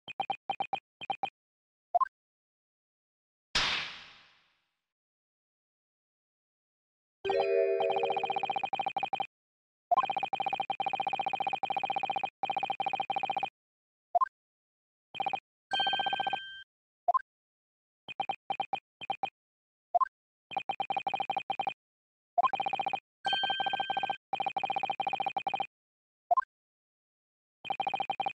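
Rapid electronic blips chatter in quick bursts.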